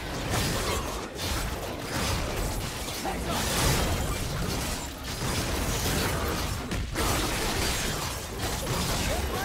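Magic blasts and clashing weapon effects crackle in a busy video game battle.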